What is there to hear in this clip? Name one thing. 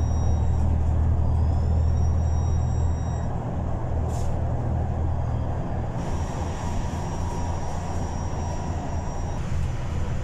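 Traffic noise rushes past outside.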